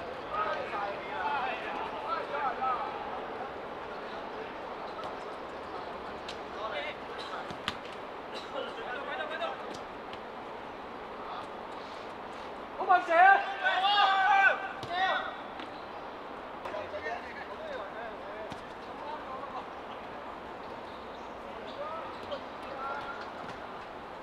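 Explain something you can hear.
Young men shout to each other outdoors during a football game.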